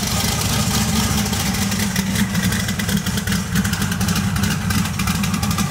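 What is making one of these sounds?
A car engine rumbles loudly with a throaty, pulsing idle.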